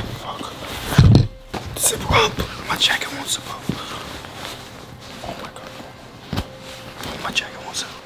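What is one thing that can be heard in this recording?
Clothing rustles and bumps close by.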